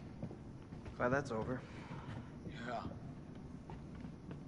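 Footsteps scuff softly on a hard floor.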